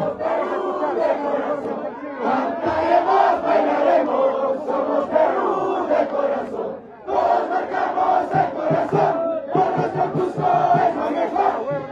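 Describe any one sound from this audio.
A crowd of men and women chant and cheer loudly close by.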